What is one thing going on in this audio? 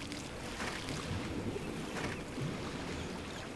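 Water splashes softly as a figure swims.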